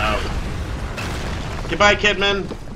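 An explosion rumbles deeply as debris falls.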